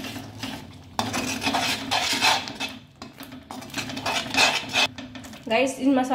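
A spatula scrapes and stirs thick paste in a metal pan.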